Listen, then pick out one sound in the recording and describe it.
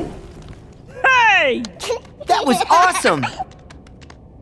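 A young girl speaks excitedly in a high voice.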